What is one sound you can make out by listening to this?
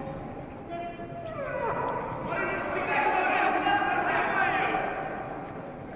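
Bare feet shuffle and thud on a mat in a large echoing hall.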